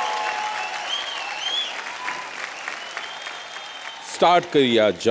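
An audience cheers and whistles loudly.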